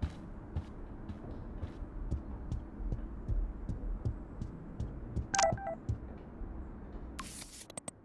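Footsteps walk steadily along a hard floor indoors.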